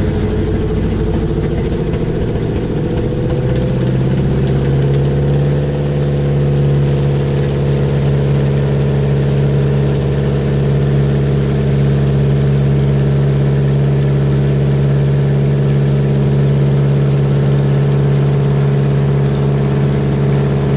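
An aircraft engine drones loudly close by, rising in pitch at first and then holding steady.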